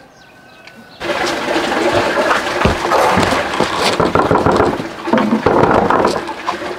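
A man knocks on a wooden door.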